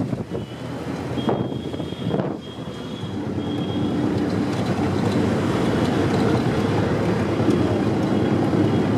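A car engine rumbles steadily from inside a moving vehicle.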